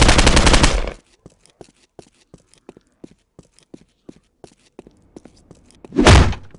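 Footsteps tap at an even pace on a hard floor.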